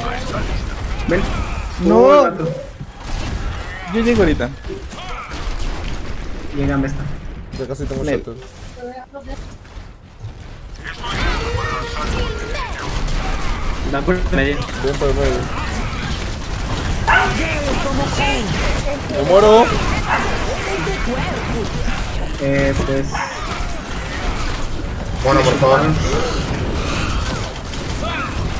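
Weapons fire and clash in bursts.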